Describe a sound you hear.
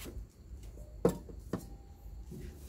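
A metal pot is set down with a clank onto a stovetop.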